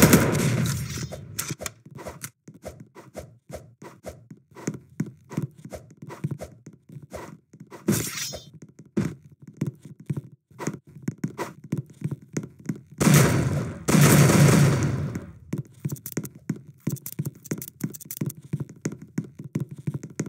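Footsteps tap quickly and steadily on a hard surface.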